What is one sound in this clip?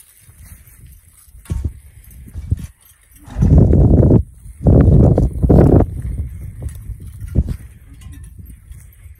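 Horse hooves thud softly on grass.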